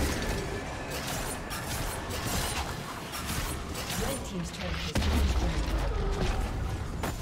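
Fantasy battle sound effects crackle and clash as spells and blows land.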